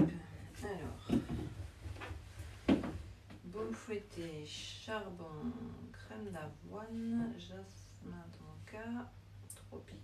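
Small jars and boxes clink and tap on a table.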